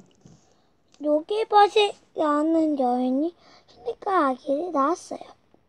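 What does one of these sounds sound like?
A young child reads aloud in a high, sing-song voice close by.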